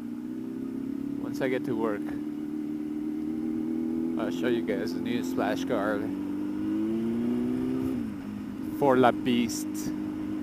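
A motorcycle engine hums steadily at low speed, then drops in pitch briefly.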